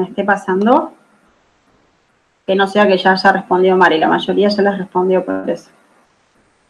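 A woman speaks calmly over an online call, in short phrases with pauses.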